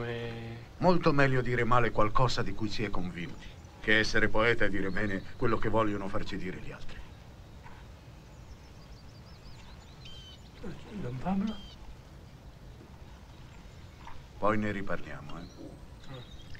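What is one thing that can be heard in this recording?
An elderly man talks calmly nearby.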